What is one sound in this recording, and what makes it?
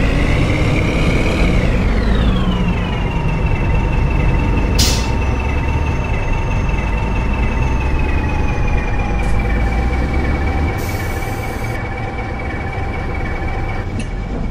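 A bus engine whines and drops in pitch as the bus slows, then idles steadily.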